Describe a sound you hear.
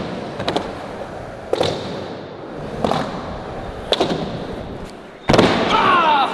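A skateboard clacks sharply against the ground.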